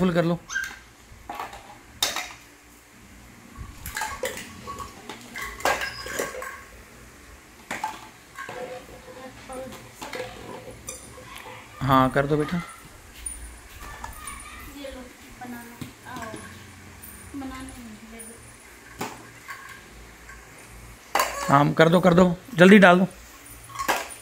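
Plastic toys clatter and knock together.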